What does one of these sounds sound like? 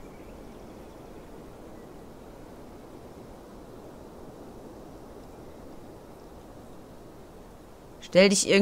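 Dry grass rustles as someone creeps through it.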